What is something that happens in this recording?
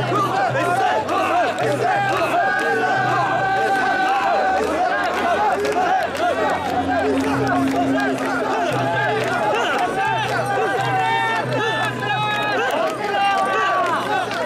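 A large crowd of men chants and shouts rhythmically close by.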